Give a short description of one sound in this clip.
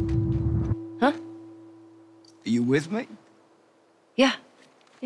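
A young woman speaks quietly and hesitantly.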